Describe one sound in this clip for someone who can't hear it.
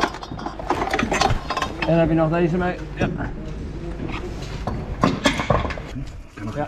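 Metal clanks and knocks close by.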